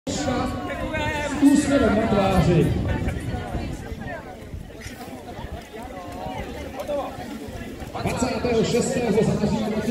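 A man speaks with animation through a microphone and loudspeaker outdoors.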